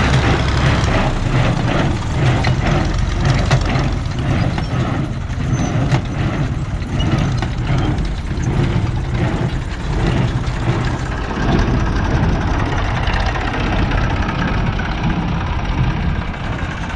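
A hay baler thumps and clatters in a fast rhythm.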